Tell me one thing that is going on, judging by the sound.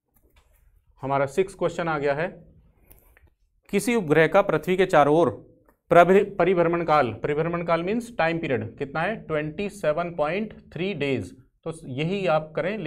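A man speaks calmly and clearly into a close microphone, explaining.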